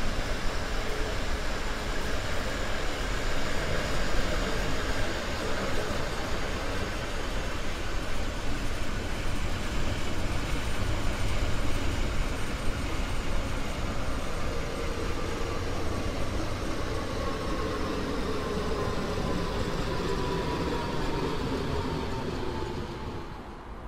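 An electric motor whines, its pitch slowly falling as the train slows.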